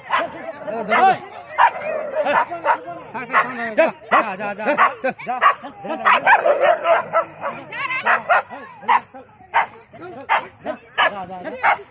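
Dogs bark sharply.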